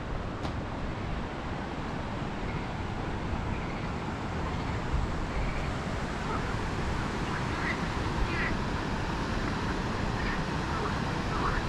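Wind blows and rumbles across the microphone outdoors.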